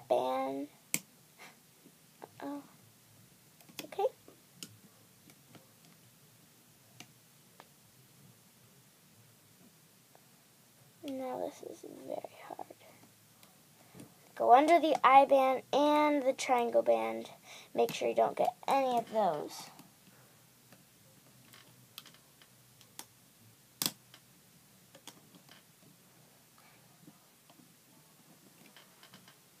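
A crochet hook clicks against plastic pegs.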